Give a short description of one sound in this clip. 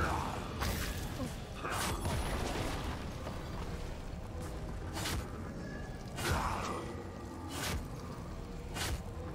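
Fantasy game combat effects crack and whoosh in quick bursts.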